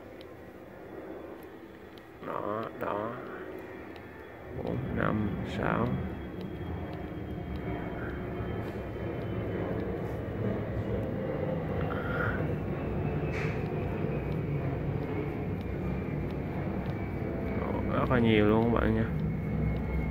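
Small buttons on a watch click softly.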